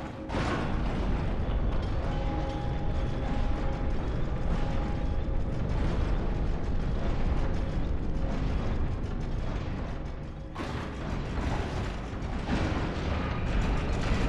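Huge gears turn with a deep, steady grinding rumble.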